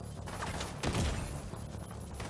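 A single rifle shot cracks.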